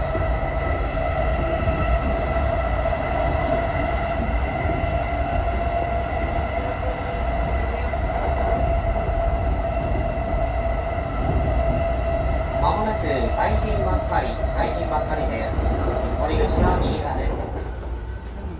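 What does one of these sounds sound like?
A train rumbles along the tracks with a steady high whine.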